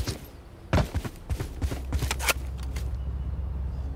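A gun clicks as it is drawn in a game.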